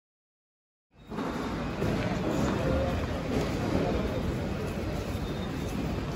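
Suitcase wheels roll over a hard floor in a large echoing hall.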